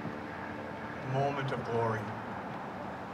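An older man speaks into a microphone over loudspeakers outdoors.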